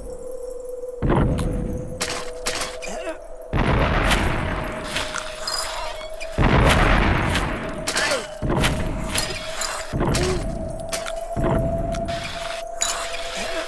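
Huge stone slabs crash and rumble as they fall.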